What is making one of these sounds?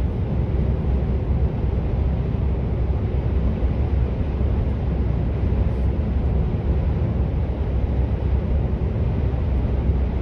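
Tyres roll over the road at speed with a steady low roar.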